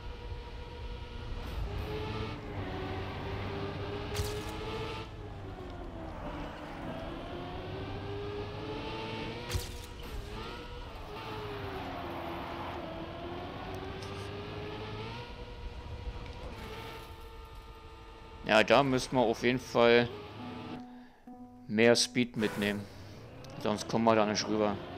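A racing car engine whines and revs up and down.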